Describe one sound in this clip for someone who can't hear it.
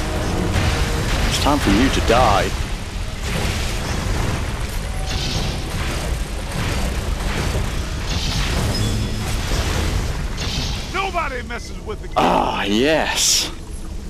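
Energy beams crackle and buzz from proton guns.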